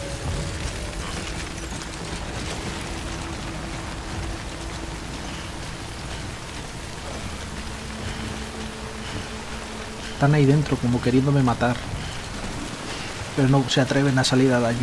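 Footsteps crunch on wet gravel and grass.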